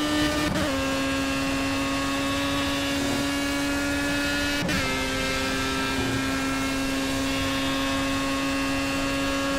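A racing car engine whines at a high, steady pitch.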